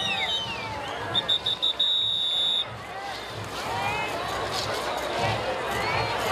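A crowd cheers and chatters outdoors.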